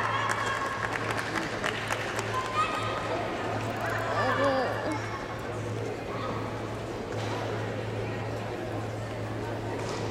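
A crowd of spectators murmurs and calls out in a large echoing hall.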